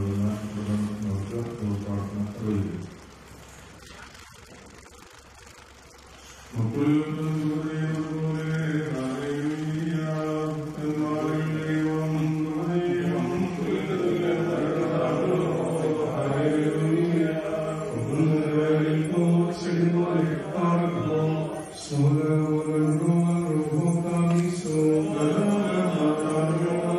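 A man chants a prayer into a microphone, heard through a loudspeaker.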